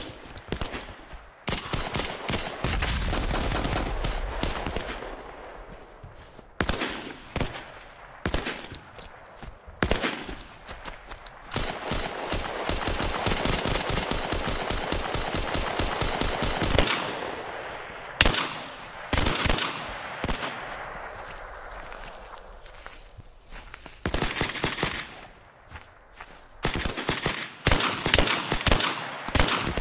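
Footsteps rustle through tall grass and brush.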